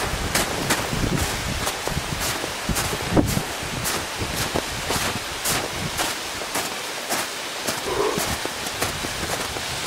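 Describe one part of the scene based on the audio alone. Footsteps crunch steadily through wet snow.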